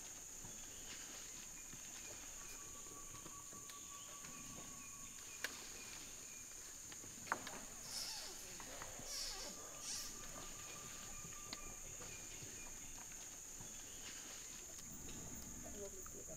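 Tree branches rustle and creak as an orangutan climbs.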